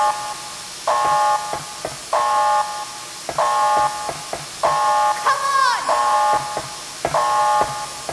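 A woman runs with quick footsteps.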